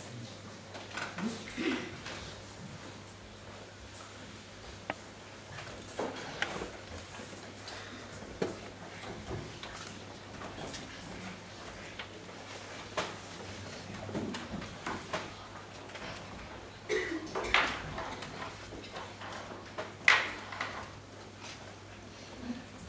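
Men and women murmur quietly nearby.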